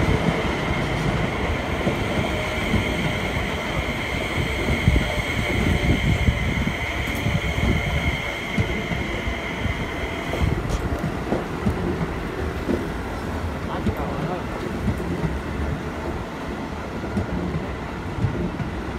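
A train rumbles past close by, wheels clattering over the rails.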